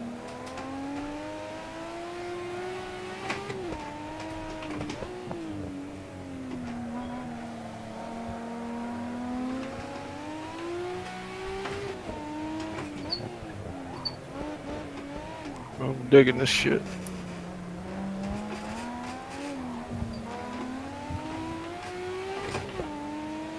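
A car engine roars steadily, its pitch rising and falling as the driver shifts gears.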